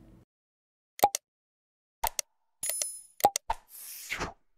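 A mouse button clicks several times.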